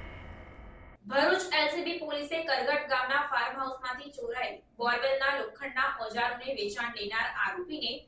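A young woman reads out the news clearly into a microphone.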